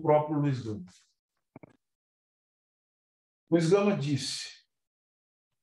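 A man speaks calmly into a nearby microphone, in short phrases with pauses.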